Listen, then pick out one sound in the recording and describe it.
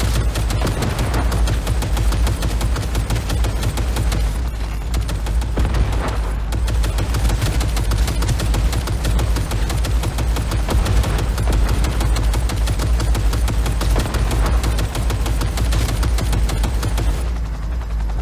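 A heavy machine gun fires in rapid, continuous bursts.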